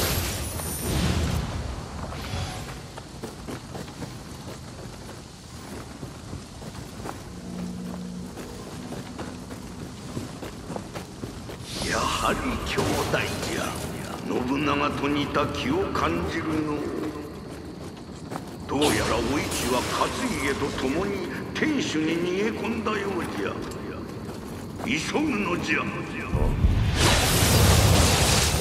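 A sword slashes and clashes in quick strikes.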